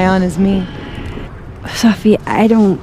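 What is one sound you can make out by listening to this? A woman speaks hesitantly and softly, close by.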